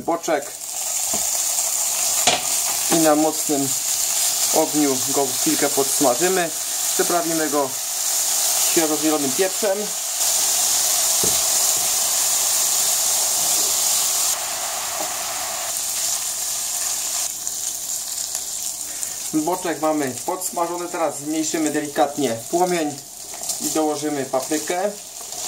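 Bacon sizzles loudly in a hot frying pan.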